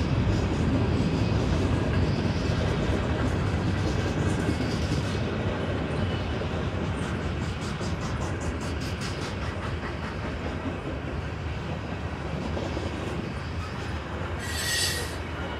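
Train wheels clack rhythmically over the rail joints.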